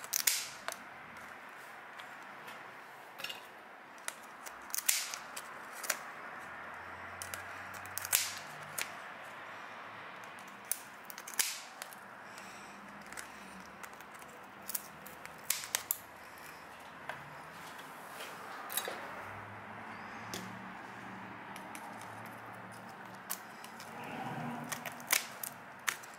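Scissors snip and crunch through a hard shell.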